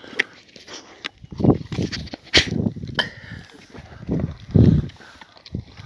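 Dogs chew and gnaw on raw meat and bones close by.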